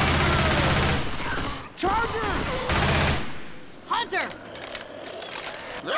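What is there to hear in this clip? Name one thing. Zombies snarl and groan nearby.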